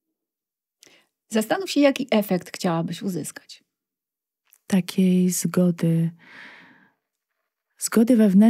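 An older woman speaks calmly into a close microphone.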